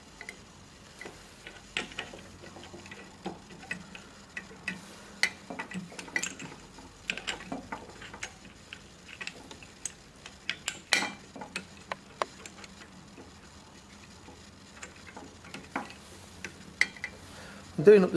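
Glass parts clink and knock lightly as they are fitted together.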